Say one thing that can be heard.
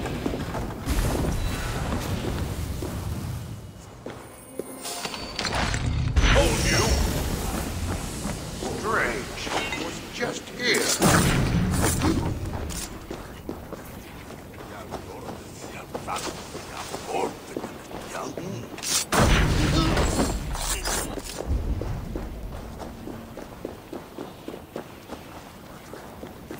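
Footsteps crunch over snowy ground.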